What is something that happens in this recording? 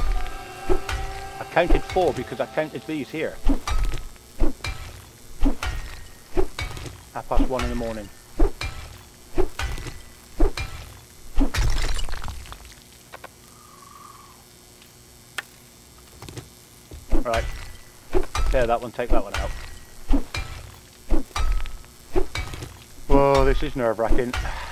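A hammer knocks repeatedly on stone blocks at a steady pace.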